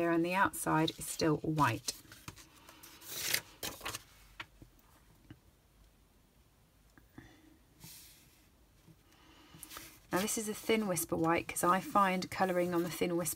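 Stiff paper rustles and slides as it is folded and handled.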